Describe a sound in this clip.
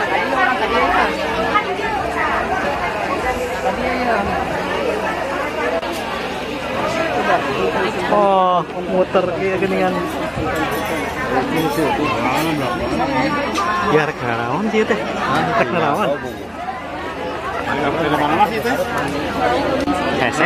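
A large crowd of people chatters loudly all around.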